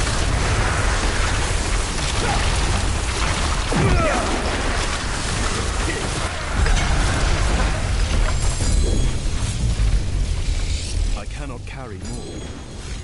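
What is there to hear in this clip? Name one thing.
Spells crackle and boom during a battle.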